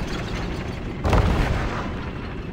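A heavy thump lands on wooden boards.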